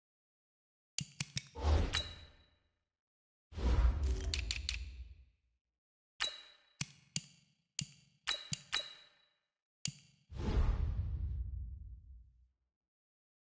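Game menu clicks and soft whooshes sound as options are chosen.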